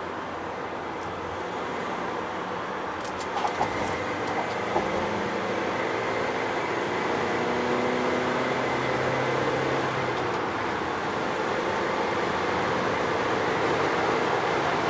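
Tyres roar on a road.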